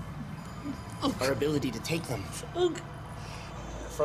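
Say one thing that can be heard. A young man whimpers and sobs in fear.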